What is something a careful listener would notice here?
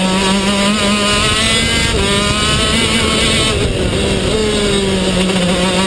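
A kart engine buzzes loudly at high revs close by.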